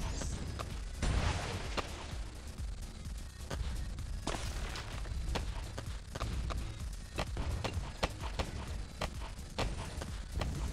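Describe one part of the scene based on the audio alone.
Balloons pop with quick, sharp snaps, over and over.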